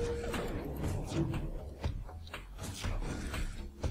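A missile launches with a short whoosh.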